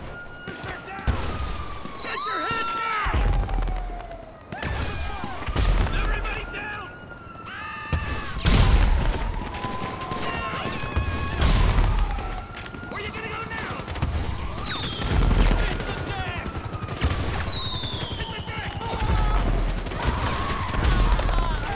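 Fireworks whistle shrilly as they fly.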